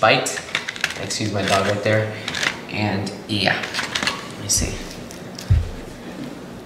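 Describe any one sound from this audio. A cardboard box rustles and taps as it is handled.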